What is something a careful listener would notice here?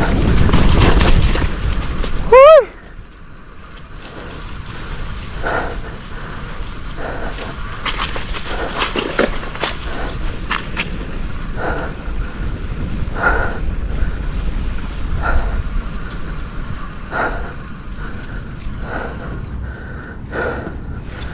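Bicycle tyres roll and rattle over a rough dirt trail.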